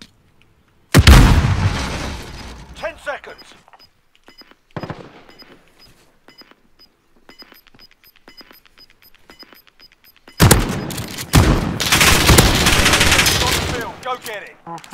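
A shotgun fires loudly with a booming echo.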